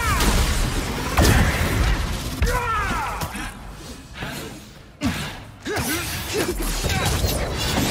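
Swooshing whooshes sweep past.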